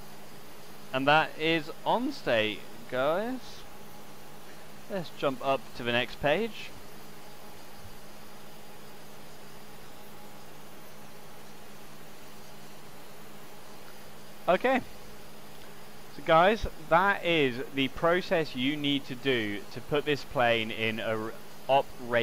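A man speaks calmly into a close microphone, pausing between phrases.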